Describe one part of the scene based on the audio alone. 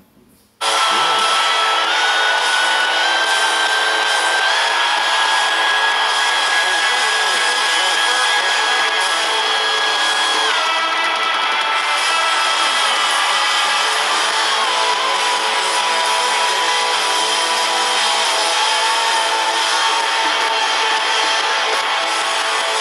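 A young man sings loudly through a speaker.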